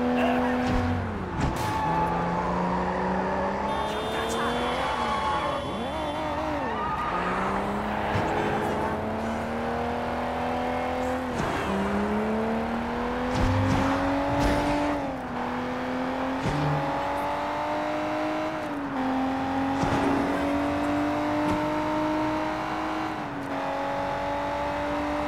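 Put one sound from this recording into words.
Tyres screech on the road.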